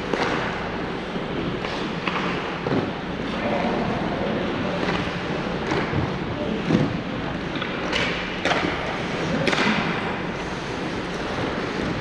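Ice skates scrape and glide across a rink in a large echoing hall.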